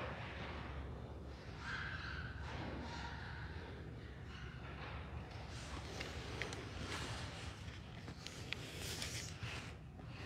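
A man speaks slowly through a microphone in a large echoing room.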